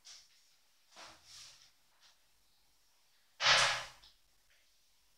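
A metal chair creaks and knocks.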